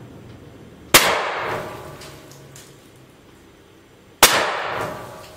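A shotgun fires two loud shots that ring out in an echoing room.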